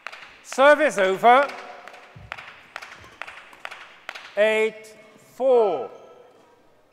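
A young man shouts out loudly in a large echoing hall.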